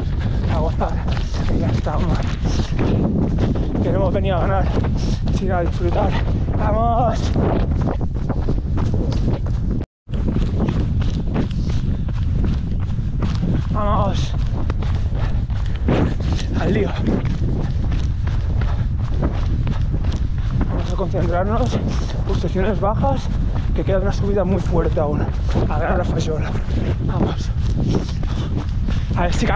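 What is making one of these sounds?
Wind rushes loudly across a microphone outdoors.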